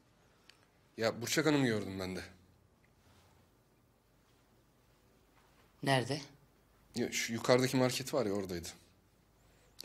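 A man speaks quietly and seriously nearby.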